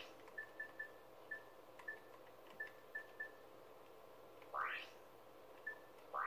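Short electronic beeps chime one after another as a menu cursor moves.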